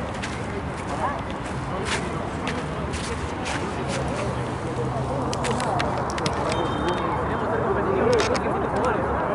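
Young men shout and call to each other across an open field at a distance.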